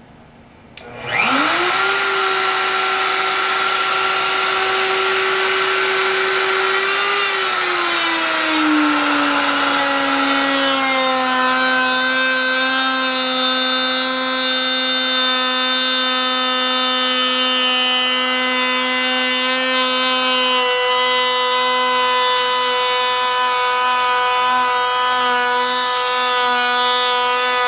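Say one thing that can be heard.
A power router starts and whines up to speed, then runs with a loud, steady high hum.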